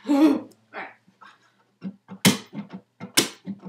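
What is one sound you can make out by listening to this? An acoustic guitar is strummed in short chords.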